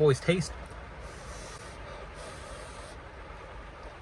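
A young man bites and chews food with soft crunching.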